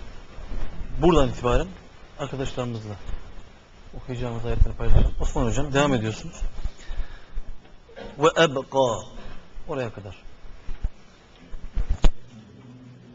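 A man chants loudly through a microphone in a room with a slight echo.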